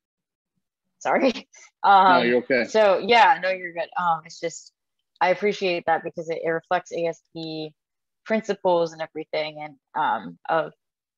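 A young woman talks cheerfully over an online call.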